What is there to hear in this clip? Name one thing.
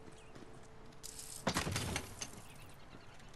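A heavy wooden chest lid swings open with a thud and rattle.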